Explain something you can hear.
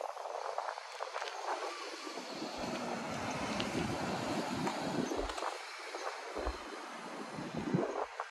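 Wind gusts blow outdoors, buffeting now and then.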